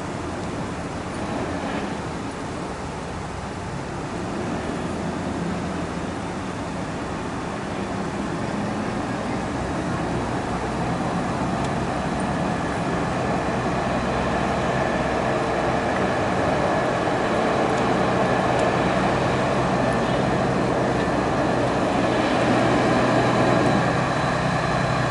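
A truck's diesel engine rumbles as it approaches and grows louder.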